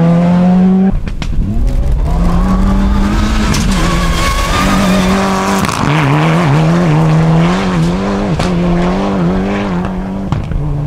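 Gravel sprays and crunches under a rally car's tyres.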